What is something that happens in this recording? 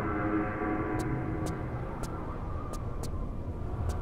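Footsteps tap on hard stone.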